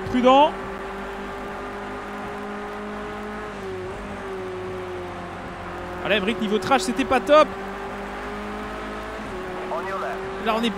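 A race car engine drones steadily, shifting pitch with gear changes.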